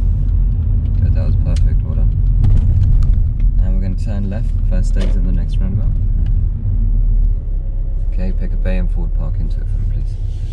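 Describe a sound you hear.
A young man speaks calmly from close by inside a car.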